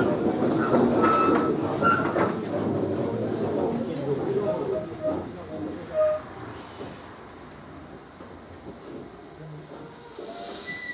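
A crowd of elderly men and women chatter all at once, then grow quieter.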